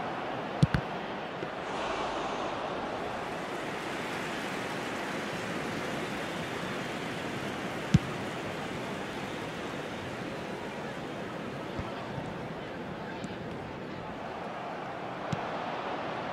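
A football is kicked with sharp thuds now and then.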